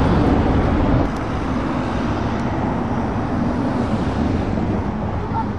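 A car drives past on the road.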